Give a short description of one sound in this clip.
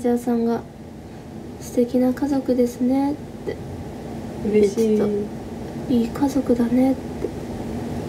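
A young woman speaks softly and casually, close to the microphone.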